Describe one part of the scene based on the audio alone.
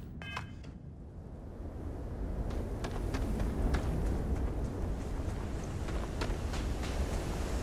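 Wind roars steadily outdoors.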